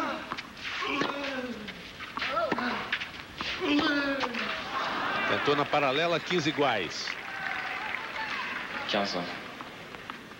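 A tennis ball is hit back and forth with rackets, each hit a sharp pop.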